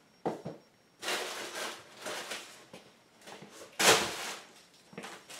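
Plastic wrapping crinkles and rustles.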